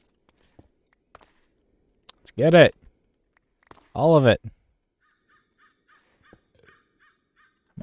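Stone blocks crack and crumble as a pickaxe breaks them.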